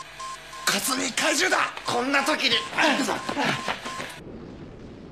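A young man shouts urgently, close by.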